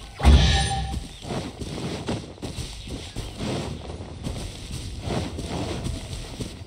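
Quick footsteps patter across grass.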